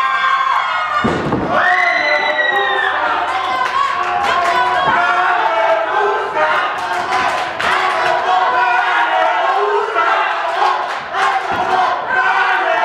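Wrestlers thud and stomp on a ring mat.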